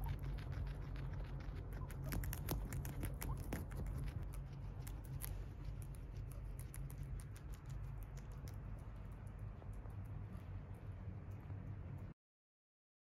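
Guinea pigs crunch and munch on lettuce leaves close by.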